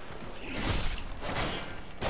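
Metal weapons clash and clang.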